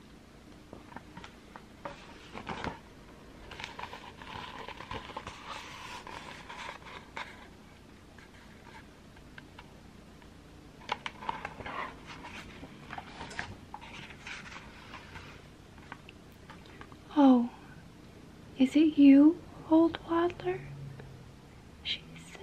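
A young woman whispers softly, very close to the microphone.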